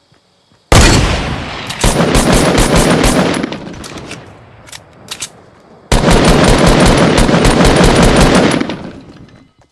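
Gunfire from an assault rifle in a video game rattles in bursts.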